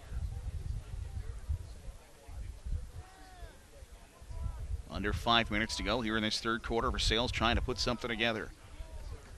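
A crowd murmurs faintly in an open stadium.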